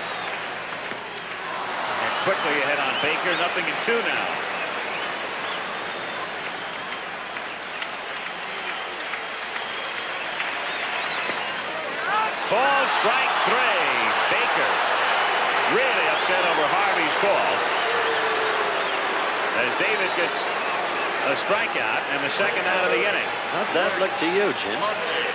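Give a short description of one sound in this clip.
A large stadium crowd cheers and roars, swelling louder partway through.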